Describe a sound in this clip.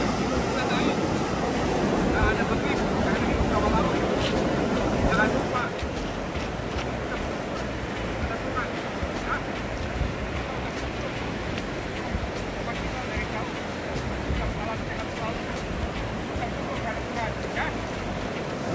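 Ocean waves crash and wash over rocks close by.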